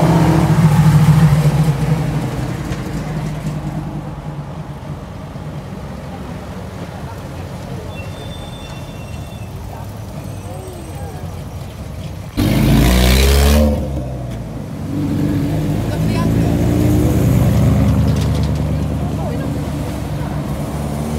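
Engines of passing vehicles rumble low and steadily.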